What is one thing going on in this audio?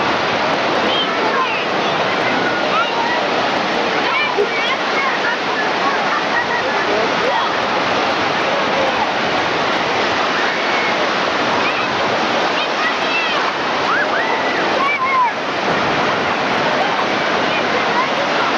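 Waves break and wash over the shore steadily.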